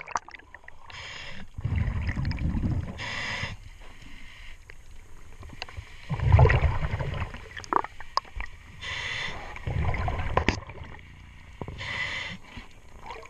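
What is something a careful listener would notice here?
A diver draws breath through a regulator with a short hiss.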